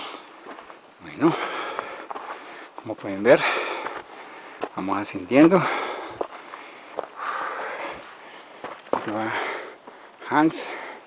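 Footsteps crunch on a stony path.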